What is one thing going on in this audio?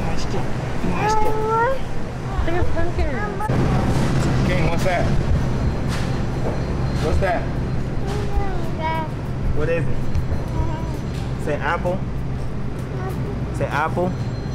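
A toddler babbles and squeals up close.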